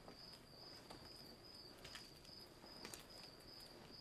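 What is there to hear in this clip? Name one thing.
A woman's footsteps pad softly across the floor.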